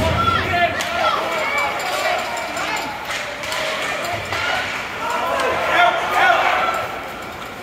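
Young male players shout and call out across an echoing rink.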